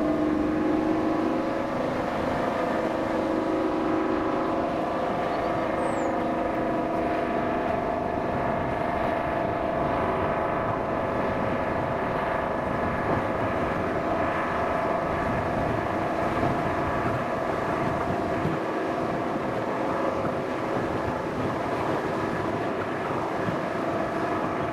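A steam locomotive chuffs in the distance ahead.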